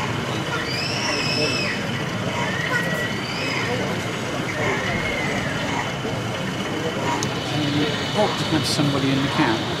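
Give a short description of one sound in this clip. A model locomotive rolls slowly along the track with a soft rumble.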